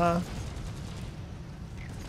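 A flamethrower roars.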